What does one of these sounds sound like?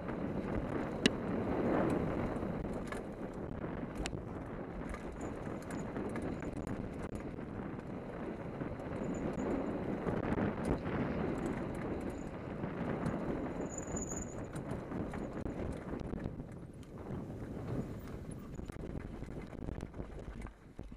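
Knocks and rattles sound from the bike on bumps.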